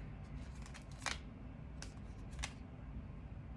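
Playing cards flick and snap softly in a hand.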